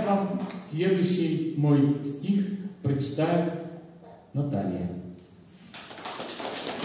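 An elderly man recites through a microphone in an echoing hall.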